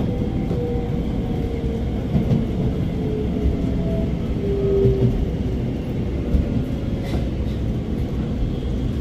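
A train's motor whines with gliding tones as it speeds up.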